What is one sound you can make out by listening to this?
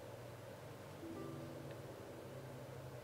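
A soft chime sounds as a notice pops up.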